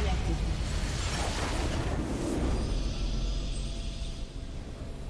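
A huge explosion booms and rumbles.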